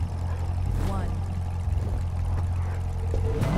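A sports car engine drones steadily.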